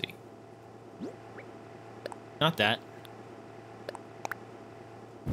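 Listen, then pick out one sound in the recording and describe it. Short game menu chimes pop and click.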